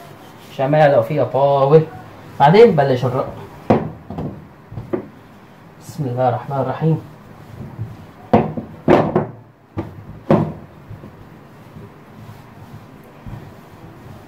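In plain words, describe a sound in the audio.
A wooden rolling pin rolls and thumps on dough against a hard counter.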